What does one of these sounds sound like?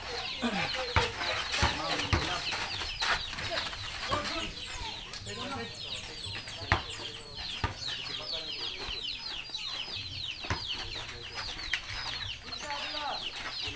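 A basketball bounces on hard dirt ground.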